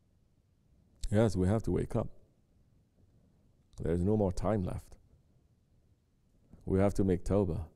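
A man chants slowly in a deep voice, in short phrases with pauses.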